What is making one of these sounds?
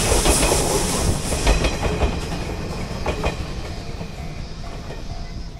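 A train rumbles past on the tracks and fades into the distance.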